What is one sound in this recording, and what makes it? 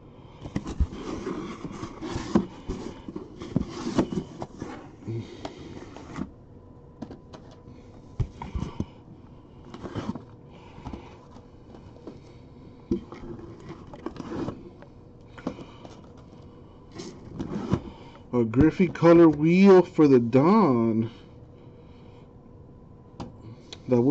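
Hands shuffle and knock cardboard boxes.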